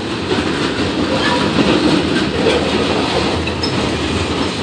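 Metal wheels squeal faintly against the rails.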